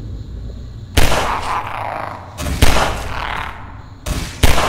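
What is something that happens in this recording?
A gun fires several loud single shots that echo.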